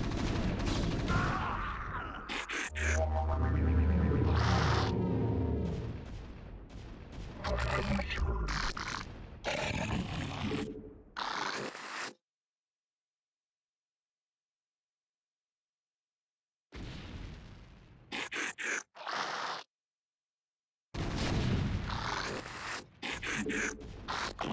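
Game sound effects chirp, hum and whoosh in short bursts.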